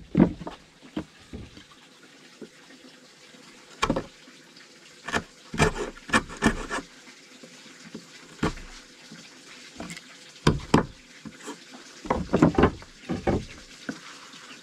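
A chisel scrapes and chips at wood in short bursts.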